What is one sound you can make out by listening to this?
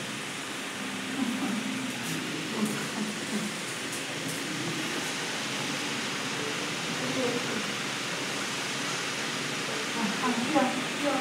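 A woman talks softly and playfully nearby.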